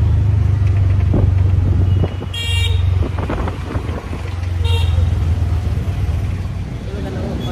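An auto-rickshaw engine rumbles steadily nearby.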